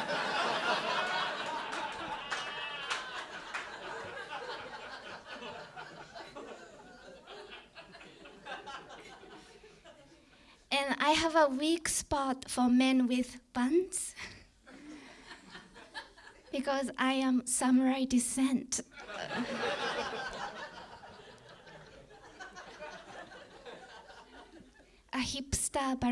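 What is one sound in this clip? An audience laughs in a room.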